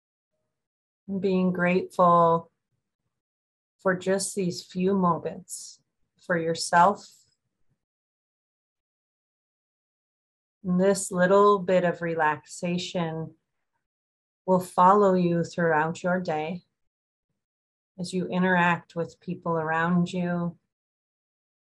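A woman speaks calmly and slowly over an online call, pausing between phrases.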